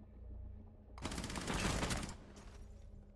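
Rapid gunfire bursts at close range.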